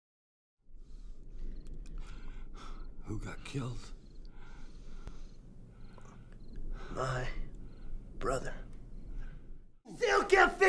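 An elderly man groans and gasps in pain.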